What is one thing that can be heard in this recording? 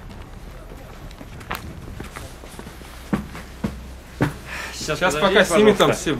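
Footsteps thud on steps and a hard floor.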